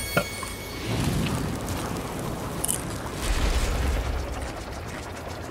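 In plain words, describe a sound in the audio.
A jet of fire roars.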